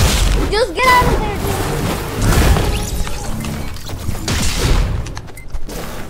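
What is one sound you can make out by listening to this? A laser weapon zaps and blasts in quick bursts.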